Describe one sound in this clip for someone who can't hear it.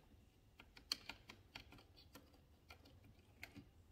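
A screwdriver ticks and scrapes against a plastic plate.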